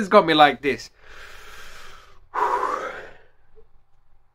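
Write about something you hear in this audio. A young man sobs and breathes out heavily, close by.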